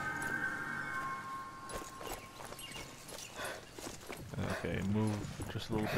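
Footsteps crunch quickly on a gravel path.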